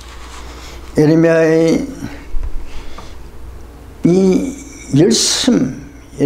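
An elderly man speaks slowly and deliberately into a microphone.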